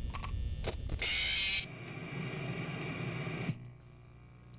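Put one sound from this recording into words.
Static hisses loudly.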